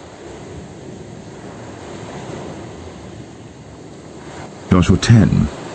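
Small waves wash gently onto a pebble beach.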